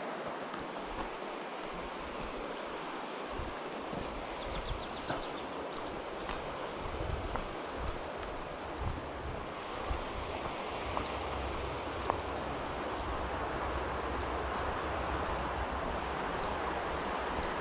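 A river rushes steadily nearby.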